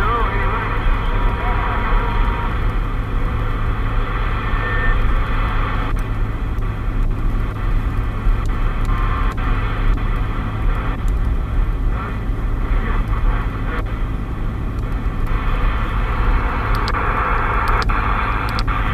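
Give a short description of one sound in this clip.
A car engine hums steadily with road rumble while driving.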